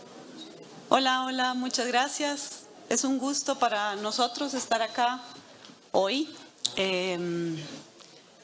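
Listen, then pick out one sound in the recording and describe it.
A woman speaks calmly into a microphone, heard over loudspeakers in a large echoing hall.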